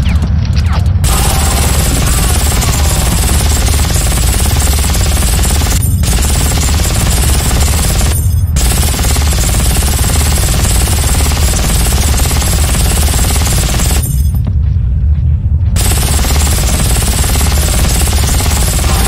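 An automatic gun fires rapid, loud bursts that echo through a tunnel.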